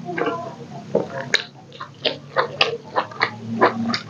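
A man bites into crisp green chilli with a crunch.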